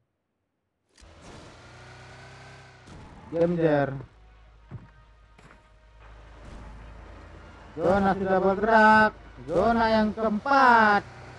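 A car engine rumbles.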